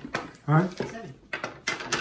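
Domino tiles clatter and click on a wooden table.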